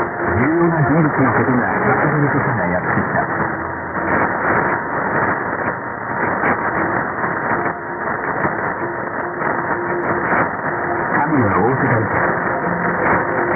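Warbling whistles of interference rise and fall over radio static.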